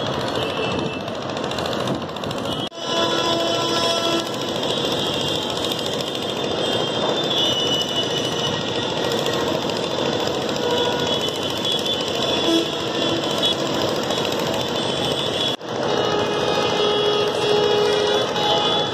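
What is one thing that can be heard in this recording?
Vehicle horns honk repeatedly.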